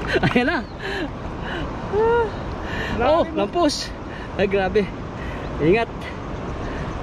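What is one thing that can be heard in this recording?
A man in the water calls out loudly from a short distance.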